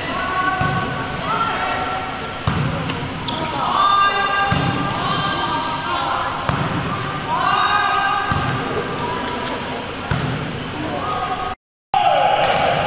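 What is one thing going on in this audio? Sports shoes squeak sharply on a hard court floor.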